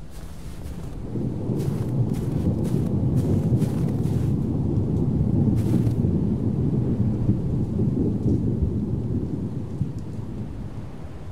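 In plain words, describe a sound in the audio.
A body slides and tumbles down a slope with a low, swelling rumble.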